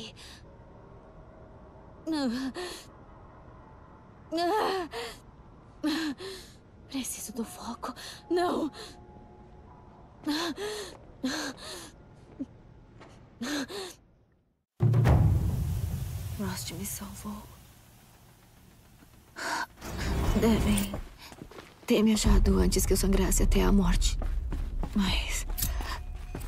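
A young woman speaks quietly and with worry, close by.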